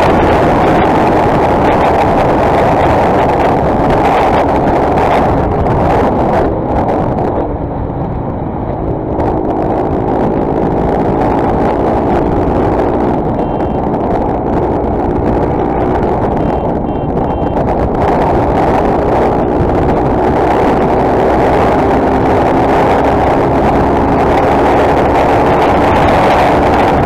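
A motorcycle engine hums steadily at high speed.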